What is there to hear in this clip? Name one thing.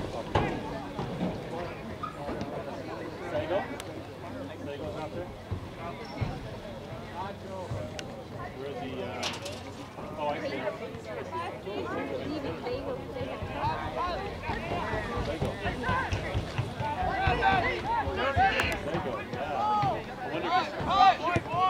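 Players call out to each other across an open field.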